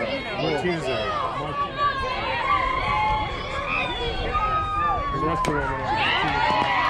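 Young girls chant and shout loudly nearby.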